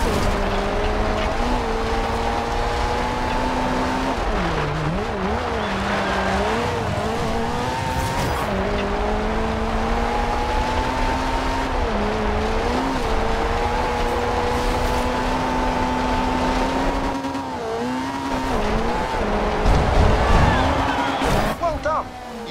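A rally car engine roars at high revs, dipping at each gear change.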